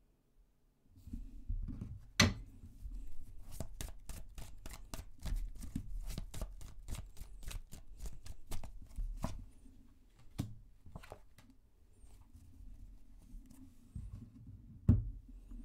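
Cards are laid down and slide on a table.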